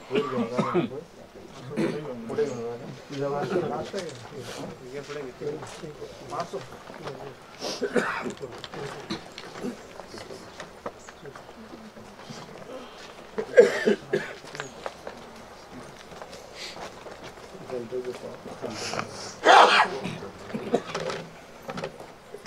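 Men murmur and talk quietly nearby.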